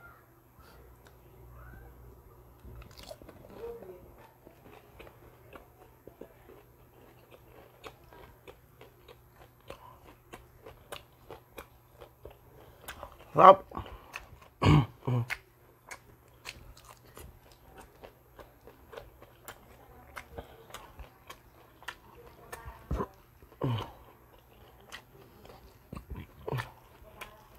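A man chews crunchy food noisily up close.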